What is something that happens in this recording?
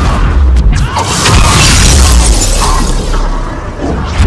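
A loud blast roars and hisses.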